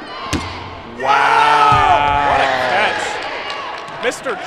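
A crowd of young men cheers loudly.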